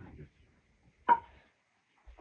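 A wooden bowl knocks onto a wooden table.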